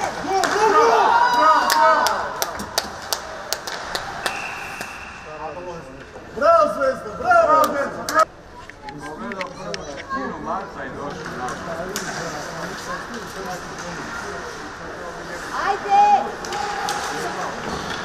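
Skate blades scrape across the ice.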